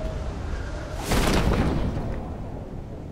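A parachute snaps open with a loud whoosh.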